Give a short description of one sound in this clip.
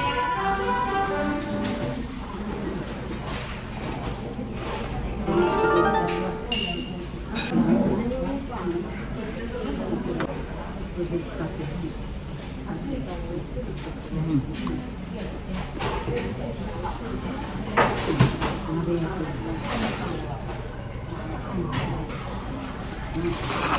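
Chopsticks and a spoon clink against a ceramic bowl.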